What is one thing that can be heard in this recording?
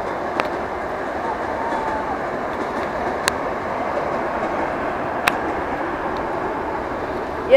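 A train rumbles past steadily.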